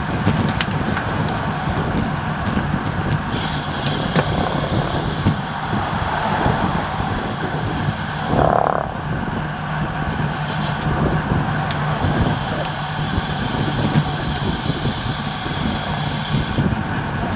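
Wind rushes loudly past a moving bicycle rider.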